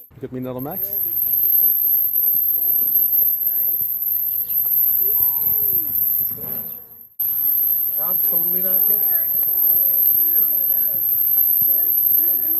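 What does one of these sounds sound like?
A woman talks to a dog in an animated, high voice.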